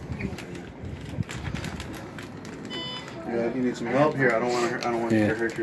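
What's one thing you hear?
Paper crinkles and rustles.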